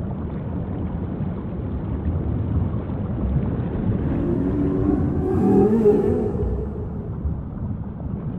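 Water laps gently at the surface outdoors.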